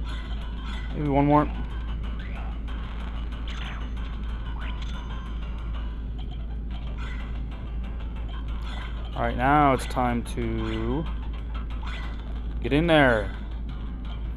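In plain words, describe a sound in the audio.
Bright electronic jingles ring out with bending tones.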